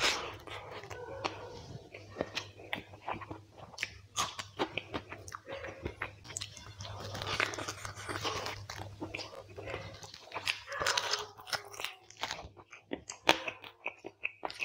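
A man chews food loudly and wetly close to a microphone.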